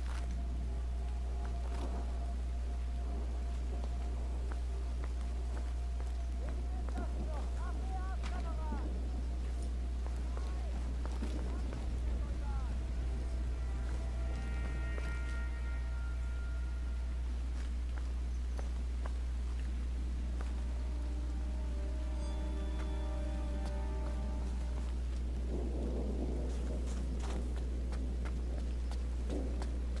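Footsteps crunch over gravel and loose rocks.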